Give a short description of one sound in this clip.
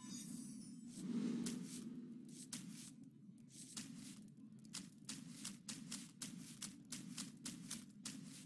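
A game's sound effects chime and whoosh as cards are swapped.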